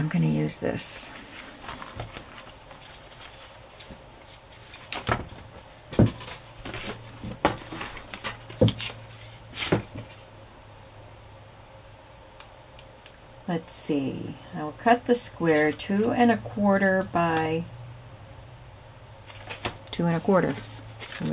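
A rubber sheet taps and rustles against a hard mat.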